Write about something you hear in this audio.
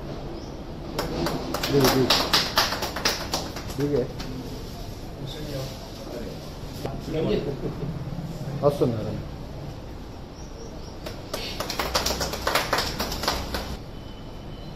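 A small group of people clap their hands.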